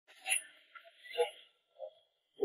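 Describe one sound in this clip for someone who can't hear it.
A sword swishes sharply through the air.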